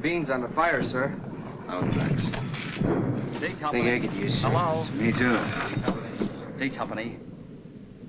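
A man speaks in a low, serious voice nearby.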